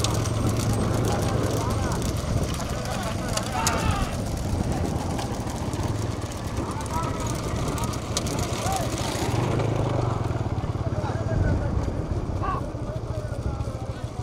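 Bullock hooves clatter on a paved road.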